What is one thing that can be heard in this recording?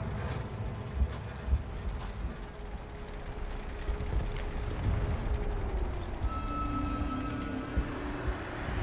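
Dull explosions thud now and then.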